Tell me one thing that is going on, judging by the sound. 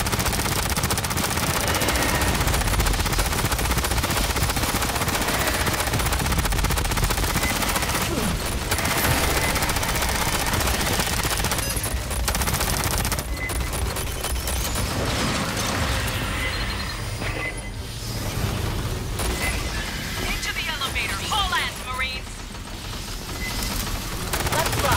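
Rapid gunfire rattles without a break.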